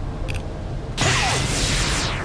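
A loud rushing whoosh bursts out and holds steady.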